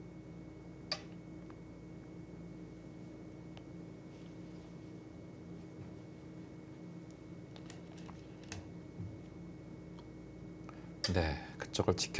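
A game stone clicks onto a wooden board.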